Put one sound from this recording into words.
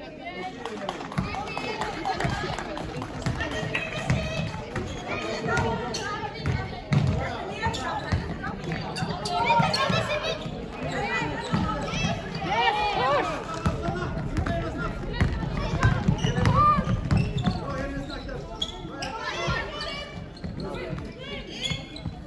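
Young women call out to each other during play.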